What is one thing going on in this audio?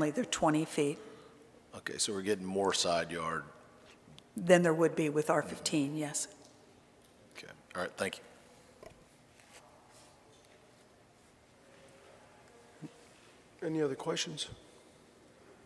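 An older woman speaks calmly into a microphone, with pauses.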